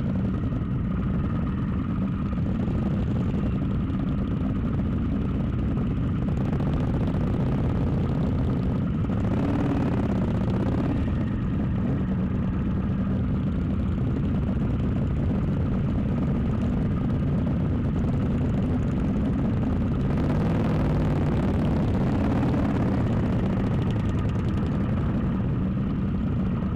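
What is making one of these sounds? Motorcycle engines rumble steadily close by.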